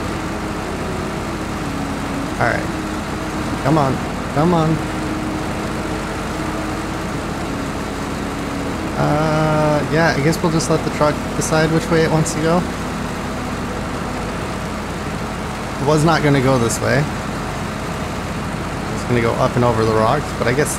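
A truck engine rumbles steadily as it crawls over rough ground.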